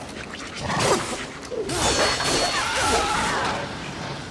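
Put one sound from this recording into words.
A creature screeches.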